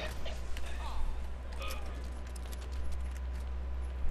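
A fiery explosion roars.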